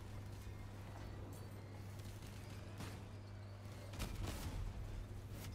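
Gunfire and explosions burst nearby.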